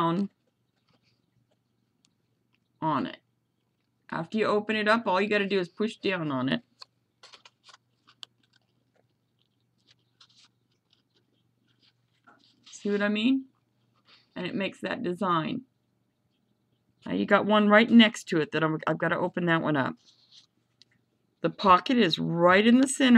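Paper crinkles softly as it is folded by hand.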